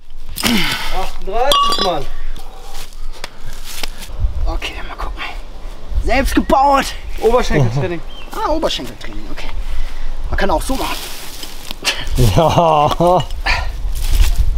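A young man grunts and shouts loudly with strain, close by.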